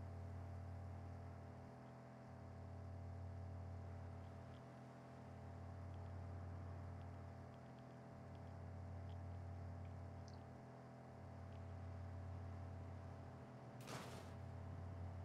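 A vehicle engine drones steadily.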